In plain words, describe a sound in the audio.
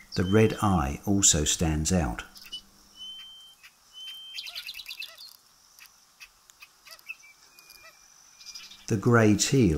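A duck calls loudly in harsh bursts.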